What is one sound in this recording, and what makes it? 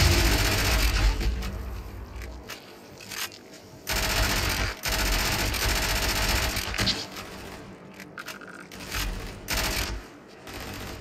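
An automatic rifle fires rapid bursts of gunshots.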